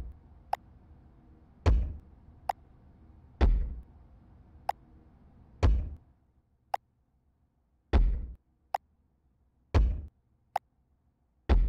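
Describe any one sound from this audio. Short, sharp game interface clicks sound now and then.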